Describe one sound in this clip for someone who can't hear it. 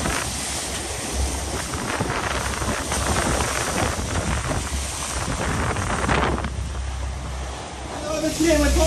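Water rushes and splashes along a moving boat's hull.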